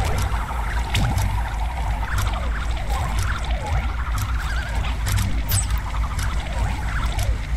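Short bleeps and clicks of game effects sound now and then.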